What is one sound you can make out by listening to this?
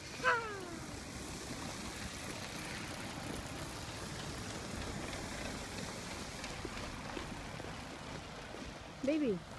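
A car passes on a wet road.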